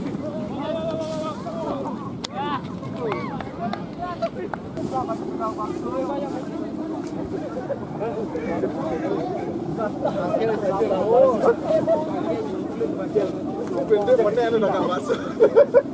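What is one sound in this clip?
A crowd of men shout and call out close by, outdoors.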